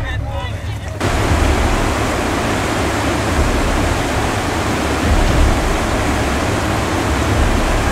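River rapids rush and roar loudly.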